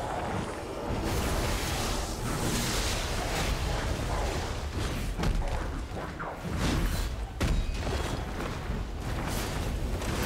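A heavy blade swings and strikes with metallic clangs.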